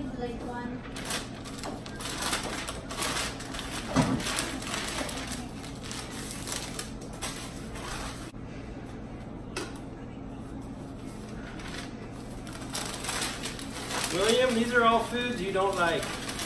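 Wrapping paper crinkles and rustles.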